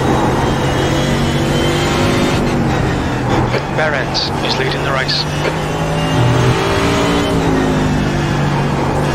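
A racing car engine roars loudly, rising and dropping in pitch as the car shifts gears and brakes for corners.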